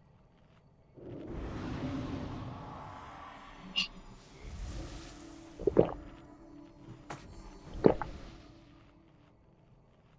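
Magic spells whoosh and chime in a game.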